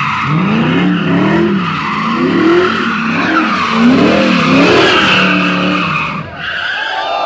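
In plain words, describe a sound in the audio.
A car engine revs up and down loudly, close by.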